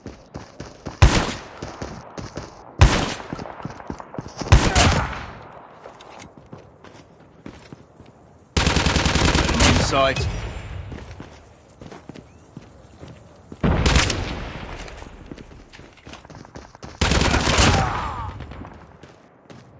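Rifle shots fire in loud bursts.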